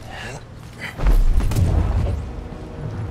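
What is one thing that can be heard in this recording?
A heavy thud sounds as someone lands from a jump.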